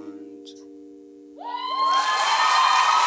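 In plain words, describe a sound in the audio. An acoustic guitar chord rings out and fades in a large hall.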